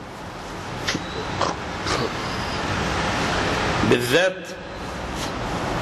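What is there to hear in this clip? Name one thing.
A man weeps and sobs close to a microphone.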